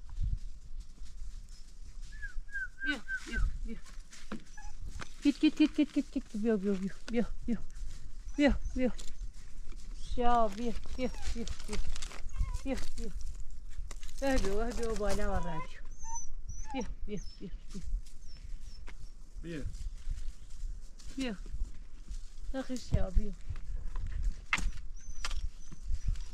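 Footsteps crunch on loose rocks.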